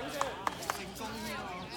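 A ball thumps on the hard court.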